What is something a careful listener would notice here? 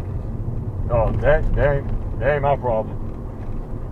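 A man speaks calmly from the driver's seat.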